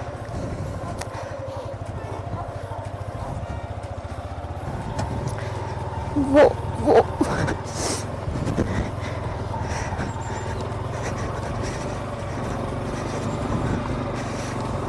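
A motorcycle engine idles and then revs as the bike rides on.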